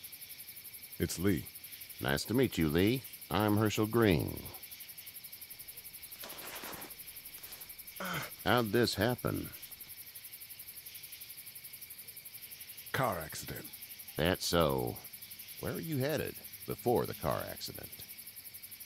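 An elderly man speaks calmly and gently.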